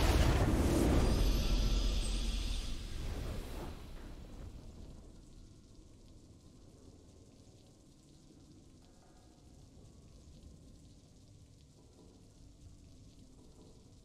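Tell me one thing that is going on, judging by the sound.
A triumphant fanfare swells and then fades away.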